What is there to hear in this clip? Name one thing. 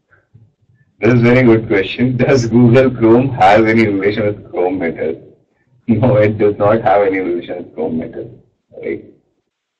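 A young man speaks calmly through a microphone on an online call.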